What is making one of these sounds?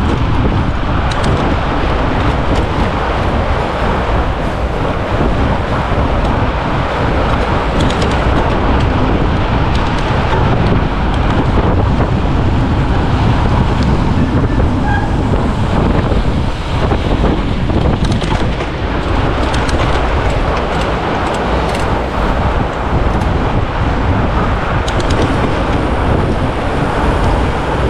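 Wind rushes and buffets loudly past a moving bicycle rider.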